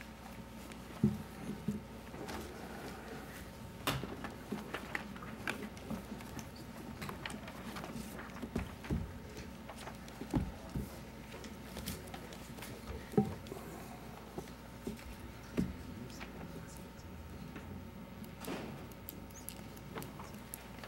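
Knocks and bumps sound on a table close to a microphone.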